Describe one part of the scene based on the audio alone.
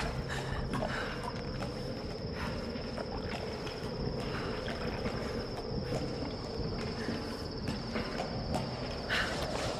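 Hands and feet clank on metal ladder rungs.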